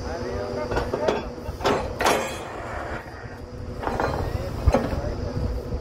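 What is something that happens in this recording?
Metal clanks against metal at the drilling rig.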